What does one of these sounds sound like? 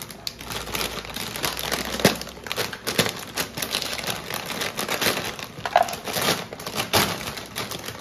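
Dry noodles crackle inside a plastic bag.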